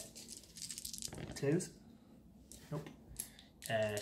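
Dice clatter onto a tabletop.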